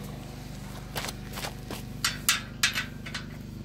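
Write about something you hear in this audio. A metal wrench clinks against a bicycle wheel hub.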